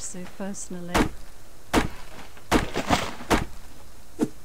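An axe chops into a tree trunk with heavy thuds.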